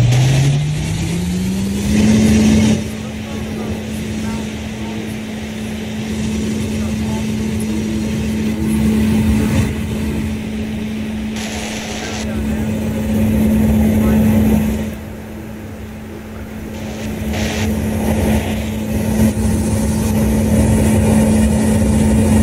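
A tank engine drones, rising in pitch at first and then holding a steady hum.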